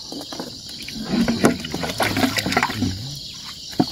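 Water splashes as a plastic bottle is pulled through it.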